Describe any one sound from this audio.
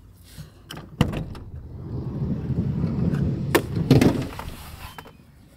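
A van's sliding door clicks and rolls open.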